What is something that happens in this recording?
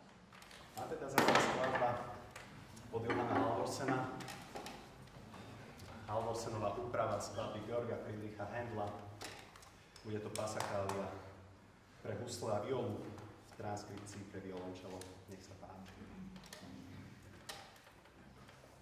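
A young man speaks calmly to an audience in an echoing hall.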